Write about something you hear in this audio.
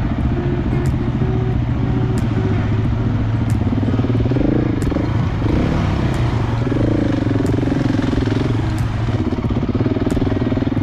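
A dirt bike engine hums and revs up close.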